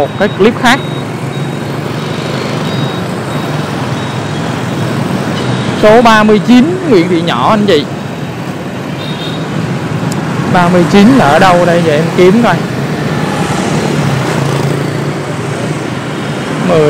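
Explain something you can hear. Motorbike engines hum steadily as traffic passes close by.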